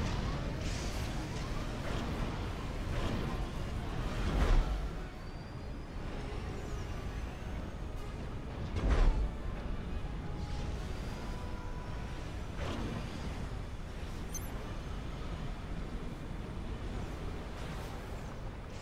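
Energy blasts burst with short whooshing bangs.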